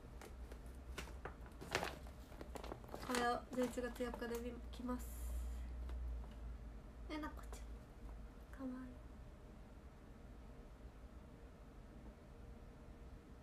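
A plastic package crinkles in a young woman's hands.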